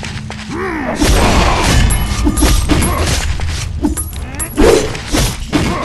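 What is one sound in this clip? Magic blasts whoosh and explode with a burst.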